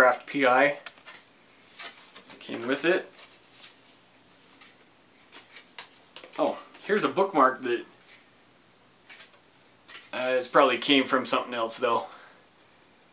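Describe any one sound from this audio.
A man talks calmly and close to a microphone, in short bursts.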